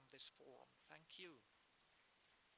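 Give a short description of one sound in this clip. A man speaks a few words into a microphone.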